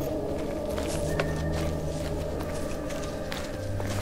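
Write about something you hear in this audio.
Footsteps crunch quickly over grass.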